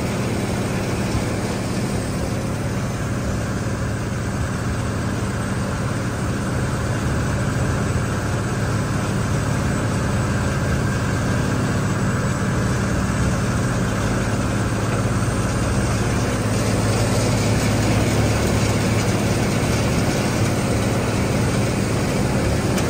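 A conveyor belt machine rumbles and clatters steadily.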